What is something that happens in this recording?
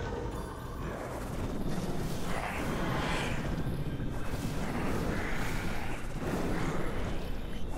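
Blades clash and slash in a fierce fight.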